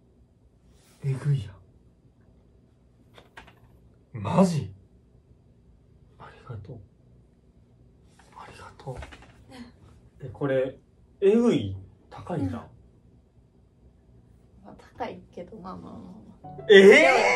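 A young woman speaks and laughs softly close by.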